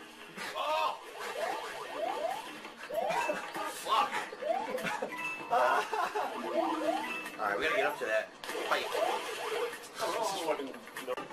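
Cartoon jump sounds boing again and again with quick rising chirps.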